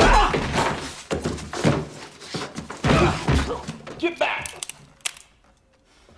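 Men scuffle and crash about.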